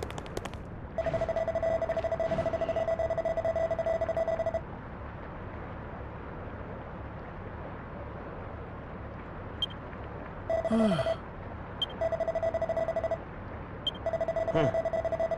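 Text blips beep steadily as dialogue scrolls.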